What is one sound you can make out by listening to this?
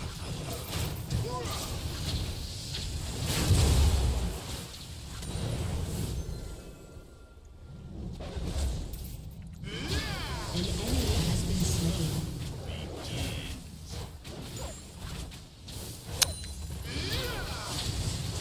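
Swords and strikes hit in quick bursts.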